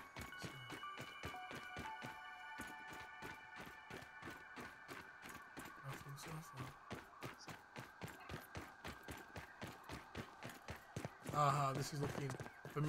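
Footsteps rustle steadily through grass.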